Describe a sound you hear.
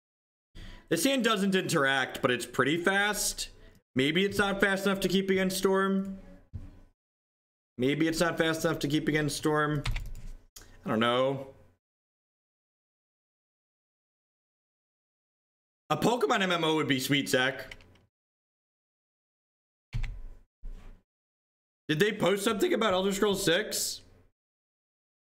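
A man talks calmly into a close microphone, in bursts with pauses.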